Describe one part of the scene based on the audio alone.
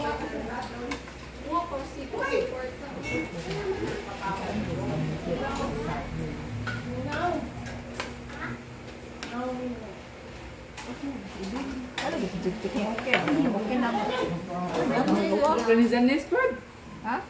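Serving spoons clink against dishes and plates.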